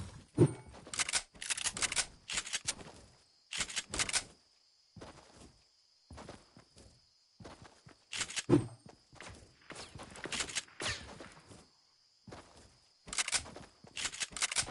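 Game footsteps run on grass.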